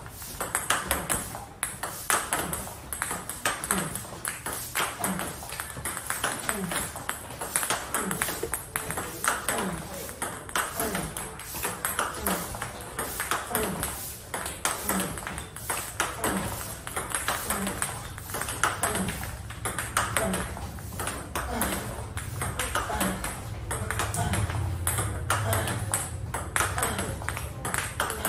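A table tennis ball bounces on the table.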